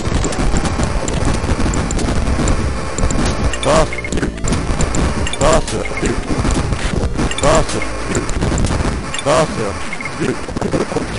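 Retro video game music plays.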